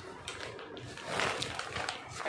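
A plastic bag rustles as it is handled.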